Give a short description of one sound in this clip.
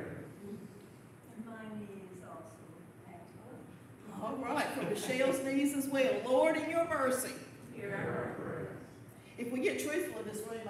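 A middle-aged woman sings slowly at a distance in an echoing room.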